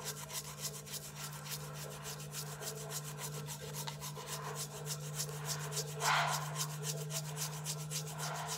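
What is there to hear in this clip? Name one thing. A toothbrush scrubs quickly back and forth over a tongue.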